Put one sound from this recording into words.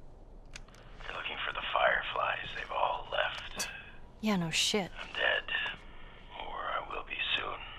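A man speaks calmly and low.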